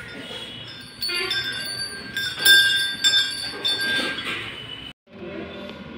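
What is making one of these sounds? A temple bell rings loudly and repeatedly.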